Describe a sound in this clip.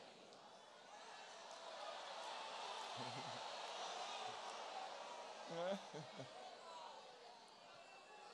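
An audience laughs softly.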